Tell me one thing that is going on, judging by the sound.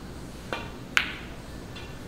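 Snooker balls knock together with a hard clack.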